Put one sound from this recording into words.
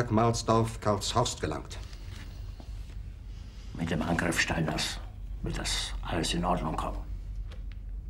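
An older man speaks in an agitated, raised voice.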